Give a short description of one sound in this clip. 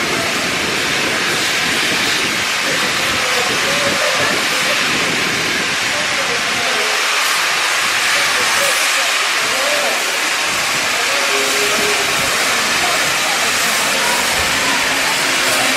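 Adults and children murmur and chat nearby on a busy platform.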